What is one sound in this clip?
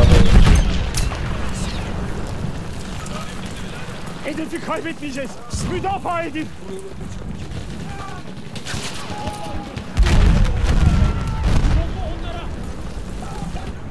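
Heavy explosions boom and rumble nearby.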